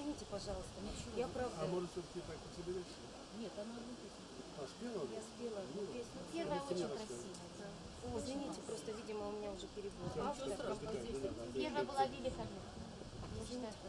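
A middle-aged woman talks calmly into a microphone.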